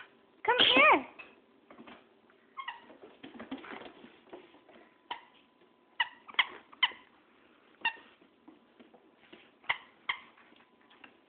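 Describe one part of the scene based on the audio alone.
A squeaky toy squeaks sharply again and again.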